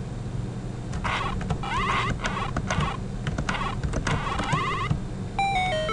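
Chirpy retro video game sound effects beep and zap rapidly.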